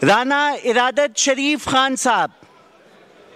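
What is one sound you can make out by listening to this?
A man speaks loudly through a microphone in a large hall.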